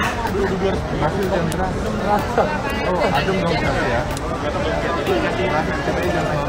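A crowd of people chatters and shouts nearby outdoors.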